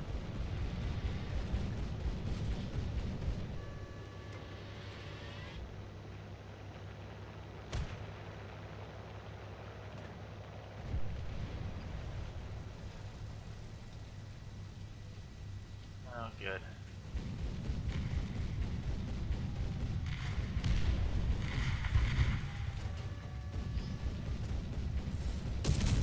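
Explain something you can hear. A heavy tank engine rumbles low and steady, swelling louder at times.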